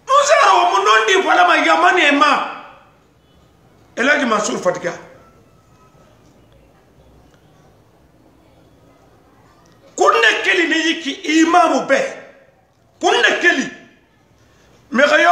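An elderly man speaks loudly and with animation, close by, in bursts with pauses.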